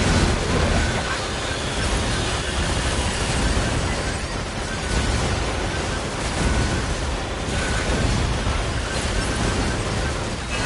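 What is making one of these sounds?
Game explosions and gunfire boom and crackle without pause.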